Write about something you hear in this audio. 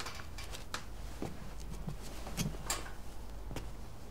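Clothing rustles as a woman gets up.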